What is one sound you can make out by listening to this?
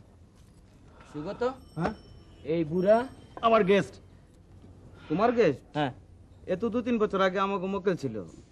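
A man speaks loudly and with animation close by.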